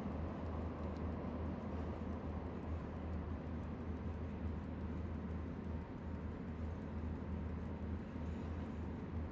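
A locomotive's electric motors hum and rumble steadily as the train runs along the track.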